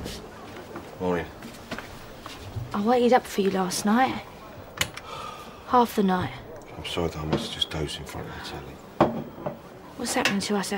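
A woman speaks in a shocked, exasperated voice close by.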